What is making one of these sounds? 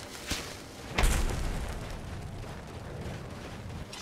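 A magic spell crackles and hums with a sudden burst.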